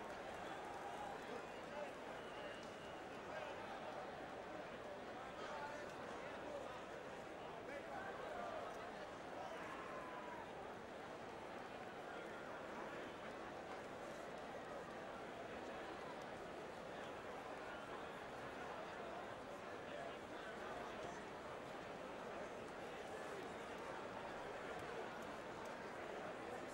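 A large crowd roars steadily in an echoing arena.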